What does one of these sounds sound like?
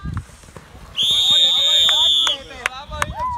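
A referee's whistle blows one long shrill blast.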